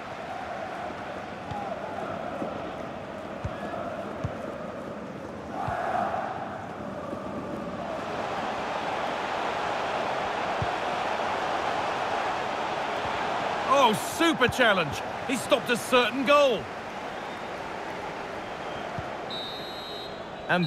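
A large crowd cheers and murmurs steadily in a big stadium.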